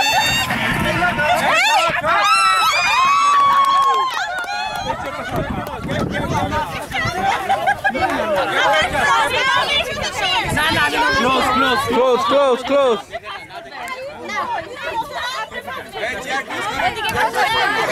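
Many women chatter and laugh loudly outdoors, their voices overlapping.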